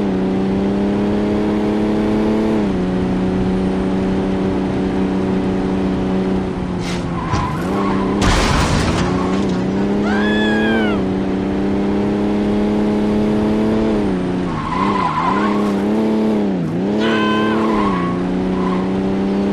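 A car engine hums steadily and shifts in pitch as the car speeds and slows.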